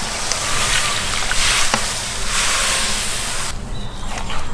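Water pours and splashes into a pot.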